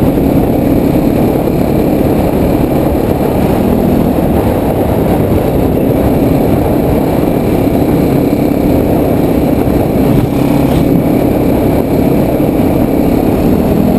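A motorcycle engine drones steadily close by.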